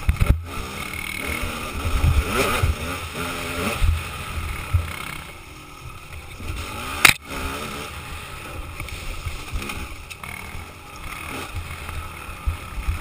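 A dirt bike engine revs and roars up close, rising and falling in pitch.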